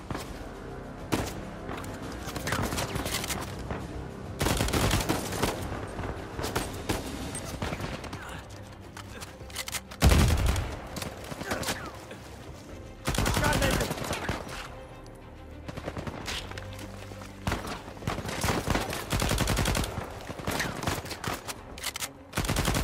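Submachine guns fire in rapid bursts.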